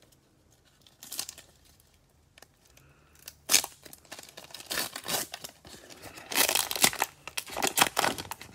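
A foil wrapper crinkles and rustles close by.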